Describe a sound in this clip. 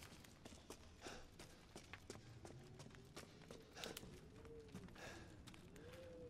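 Footsteps tap on stone floors in an echoing passage.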